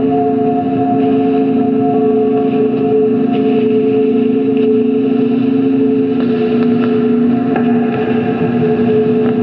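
A synthesizer drones with sustained electronic tones that shift slightly in pitch.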